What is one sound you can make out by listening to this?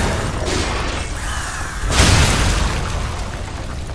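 A heavy blade strikes metal armour with a loud crash.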